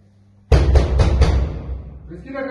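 Heavy blows pound on a door.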